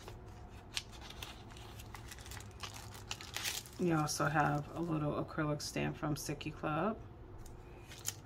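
Plastic packaging crinkles and rustles in someone's hands.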